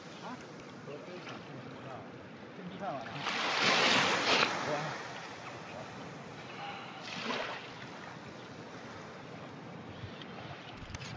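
Small waves lap softly on the water's edge.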